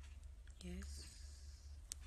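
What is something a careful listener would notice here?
A young woman speaks briefly close to the microphone.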